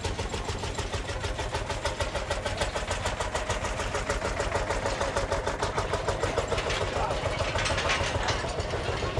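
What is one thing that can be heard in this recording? An old tractor engine chugs with a fast, even putter close by.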